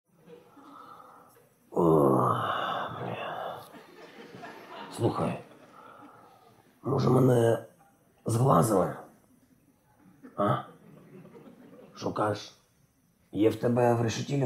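A man speaks in a low, weary voice close by.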